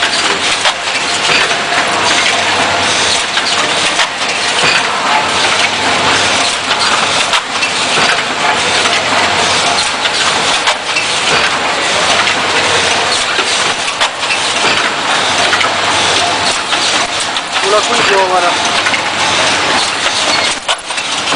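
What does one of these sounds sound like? A packaging machine hums and clatters steadily.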